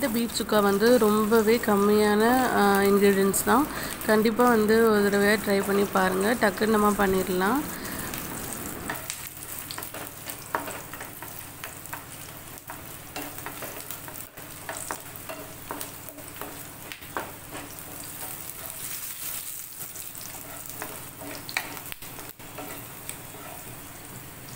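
A spatula scrapes and taps against a frying pan.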